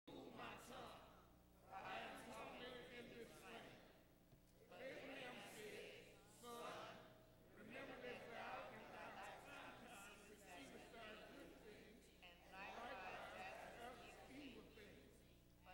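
A man reads aloud steadily through a microphone in a large echoing hall.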